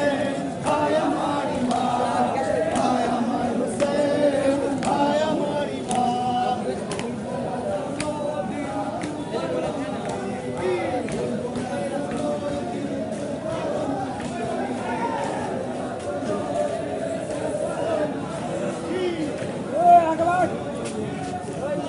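A crowd of men chant together loudly outdoors.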